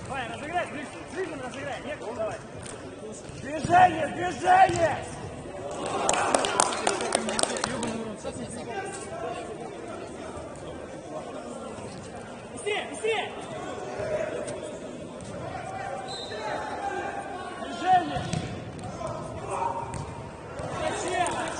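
A ball is kicked with dull thuds.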